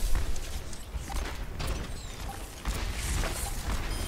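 A revolver fires sharp shots.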